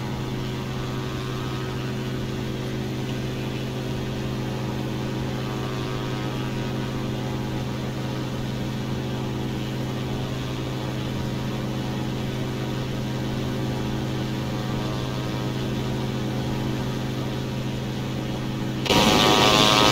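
A propeller engine drones steadily, muffled as if heard from inside the cabin.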